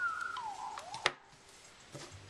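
A phone is set down on a wooden table with a light knock.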